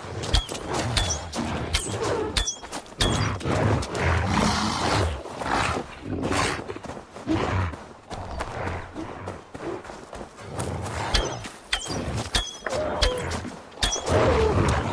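A bow twangs as arrows are loosed, again and again.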